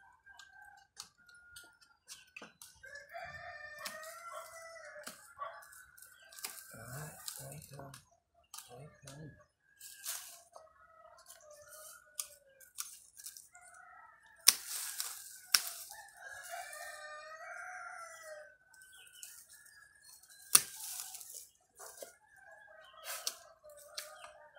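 Pruning shears snip through twigs.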